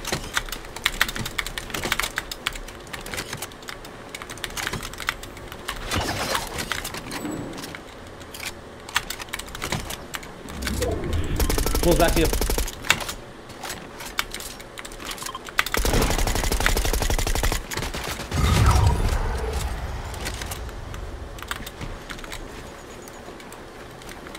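Wooden building pieces snap into place with quick, repeated clacks.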